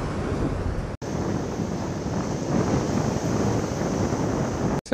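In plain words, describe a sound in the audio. Water splashes as children play in the surf.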